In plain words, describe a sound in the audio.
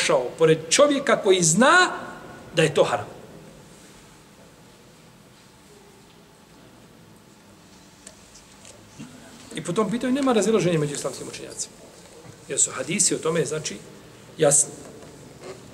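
A middle-aged man speaks with animation close to a microphone, pausing between phrases.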